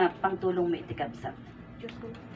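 A woman sings into a microphone through a loudspeaker.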